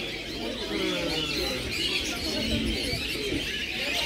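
Adults talk in low voices in the background outdoors.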